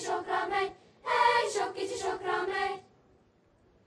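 A children's choir sings.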